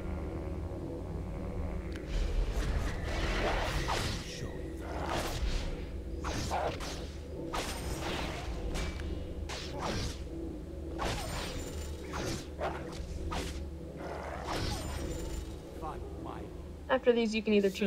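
Weapons strike and magic blasts burst in quick, repeated hits.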